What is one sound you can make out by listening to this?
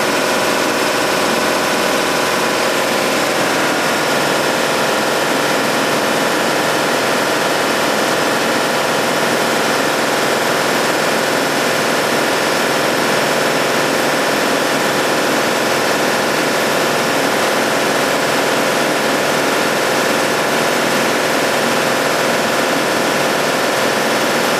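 A compressor machine hums and drones loudly and steadily.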